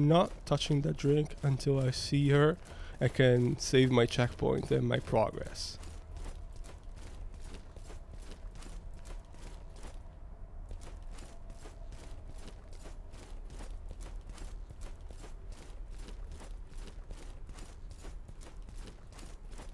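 Footsteps run across hard stone.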